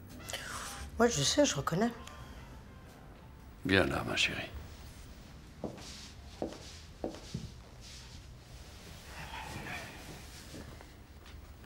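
A middle-aged woman speaks quietly, close by.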